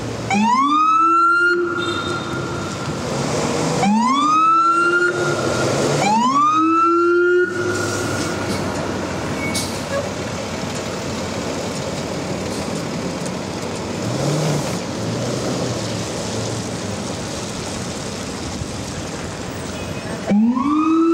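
A heavy truck engine rumbles as the truck drives past.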